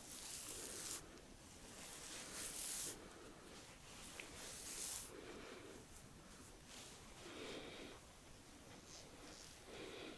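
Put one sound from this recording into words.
Soft towels rub and brush against a man's face in slow strokes.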